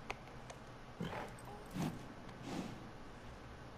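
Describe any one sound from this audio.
A horse snorts and breathes heavily.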